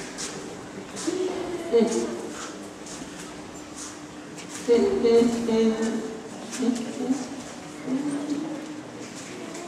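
A young man sings in a large echoing hall.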